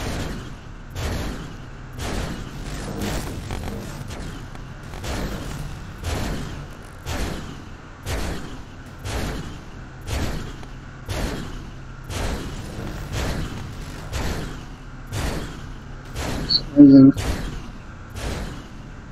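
Laser guns fire in quick bursts, about once a second.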